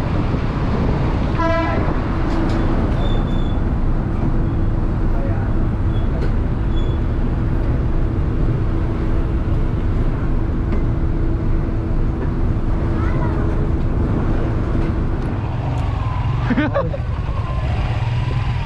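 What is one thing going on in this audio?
Motorbike engines idle and rumble close by.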